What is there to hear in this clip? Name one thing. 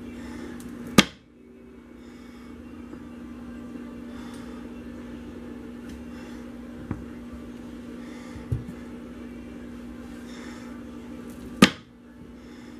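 A wire cutter snaps down through a block of soap with a sharp thunk.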